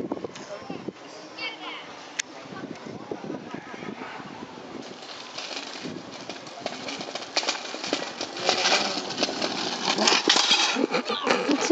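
Scooter wheels rattle over paving stones.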